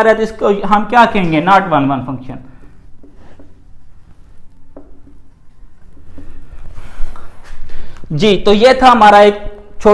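A young man lectures with animation, close by.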